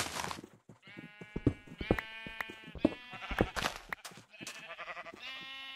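Blocks crumble and break in quick succession.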